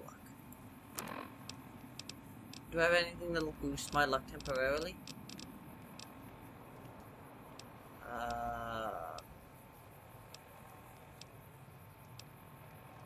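A game menu clicks softly as a list is scrolled through.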